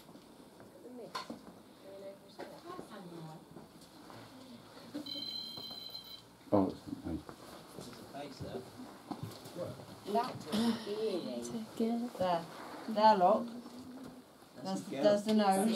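Several people talk quietly nearby.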